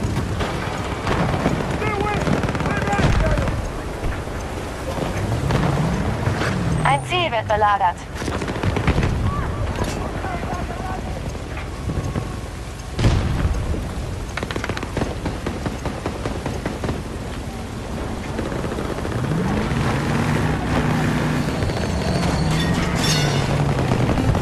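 A heavy armoured vehicle's engine rumbles and whines as it drives.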